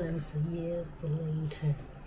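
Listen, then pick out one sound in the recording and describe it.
Chopsticks stir noodles in a metal pot.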